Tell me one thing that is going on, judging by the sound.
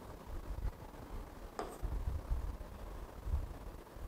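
A marker squeaks faintly on a board.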